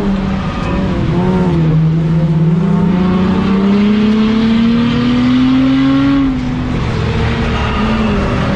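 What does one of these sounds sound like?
A race car's engine roars under acceleration, heard from inside the car, rising in pitch and then dropping.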